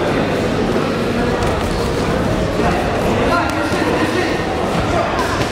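A large crowd of young men chatters and shouts loudly in an echoing hall.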